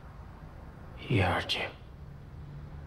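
An older man speaks in a low, calm voice.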